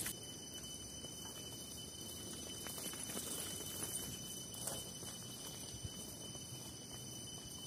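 Bicycle tyres crunch over dry leaves and dirt.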